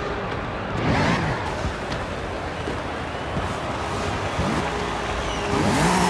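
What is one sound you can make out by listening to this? A van's engine revs as it pulls away.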